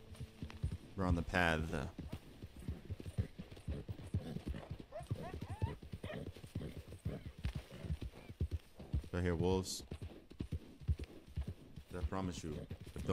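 A horse's hooves thud steadily on soft ground at a trot.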